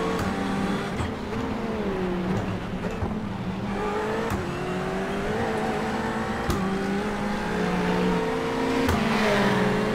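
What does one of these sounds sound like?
A racing car's gearbox clicks sharply through gear changes.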